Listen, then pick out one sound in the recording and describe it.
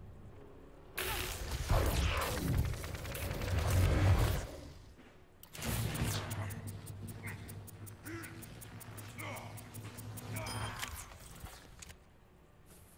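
A sci-fi energy weapon fires a crackling beam with bursts.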